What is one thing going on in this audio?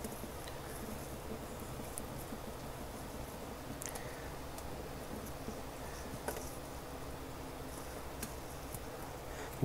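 Soil crumbles and roots rustle as hands pull a plant apart.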